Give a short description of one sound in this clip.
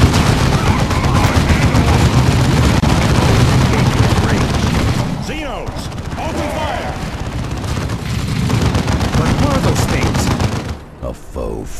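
Guns fire in rapid bursts during a battle.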